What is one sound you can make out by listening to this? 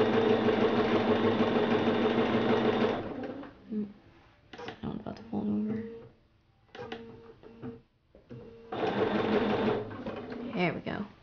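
A sewing machine whirs in steady bursts.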